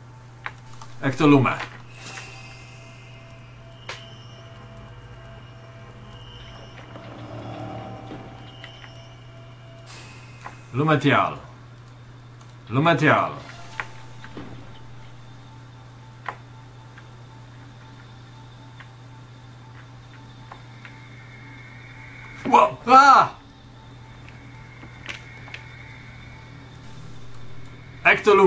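A young man speaks in short bursts through a headset microphone.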